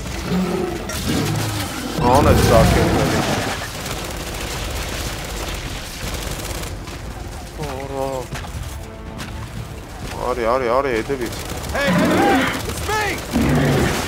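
Gunfire and explosions boom and crackle.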